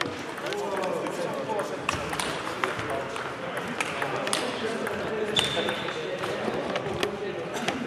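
A crowd of men chatter in a large echoing hall.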